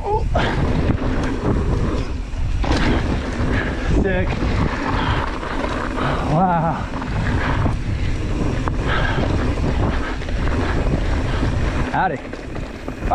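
Bike tyres rumble and rattle over a rough dirt trail.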